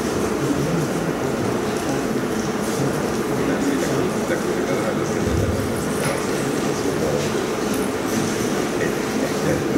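A crowd of men and women chatters quietly in a large echoing hall.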